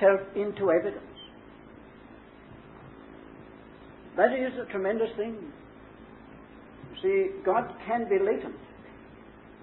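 An elderly man speaks in short, calm phrases with pauses.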